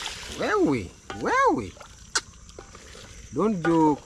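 A wooden spoon stirs and scrapes in a metal pot.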